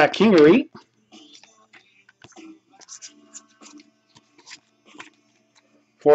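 Stiff cards rustle and slide against each other in hands.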